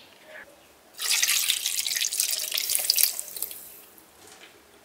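Thick sauce pours into a pot.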